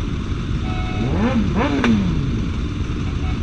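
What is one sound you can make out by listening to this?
A motorcycle engine revs up and down sharply.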